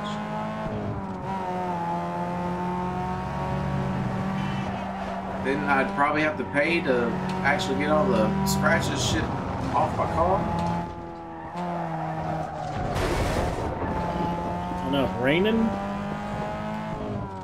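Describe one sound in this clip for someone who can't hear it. A car engine revs steadily at high speed.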